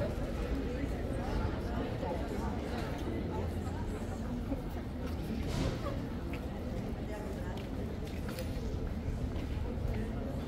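Footsteps tap on pavement.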